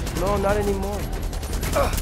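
A rifle fires in quick bursts.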